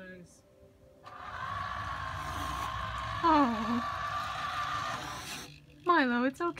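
A toy car whirs across a hard floor.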